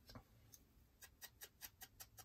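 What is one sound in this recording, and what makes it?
A small ink pad dabs repeatedly against paper with quick soft taps.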